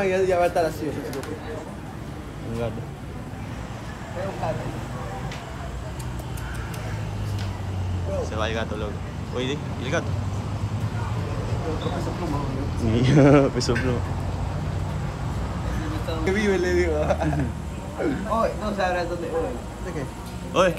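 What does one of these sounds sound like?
A young man talks close by, casually.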